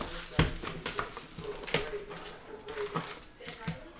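Foil packs rustle as they are handled.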